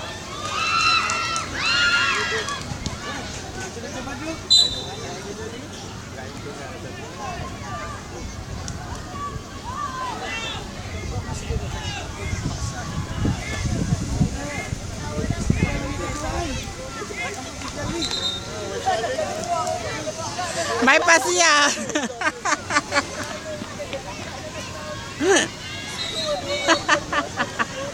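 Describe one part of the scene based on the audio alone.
A crowd of young people shouts and calls out across an open field in the distance.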